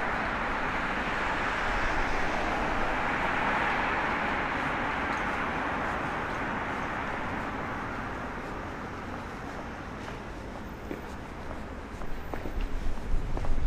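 A low city traffic hum carries on in the background outdoors.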